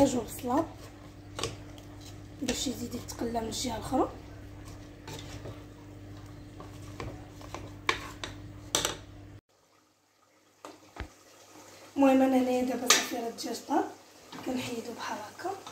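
A spoon scrapes and clinks against a pot.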